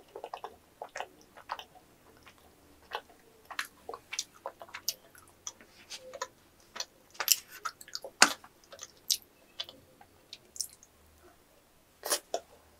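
A young woman chews food with close, wet smacking sounds.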